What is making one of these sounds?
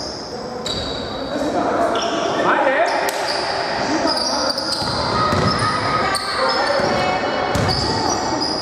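A basketball thuds on the floor.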